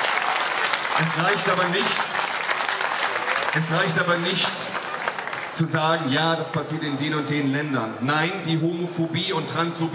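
A man speaks energetically into a microphone over loudspeakers.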